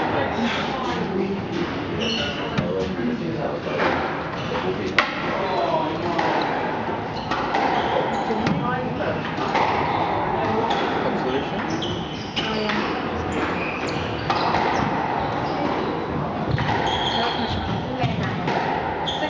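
A squash ball smacks against the walls and rackets in an echoing court.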